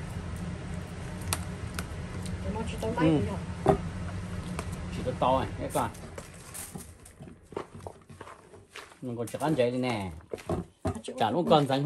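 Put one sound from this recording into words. Hands squish and knead raw ground meat.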